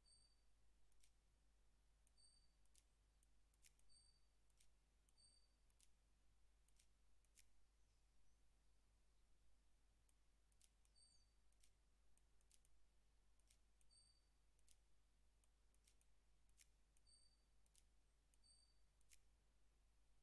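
Puzzle pieces click into place.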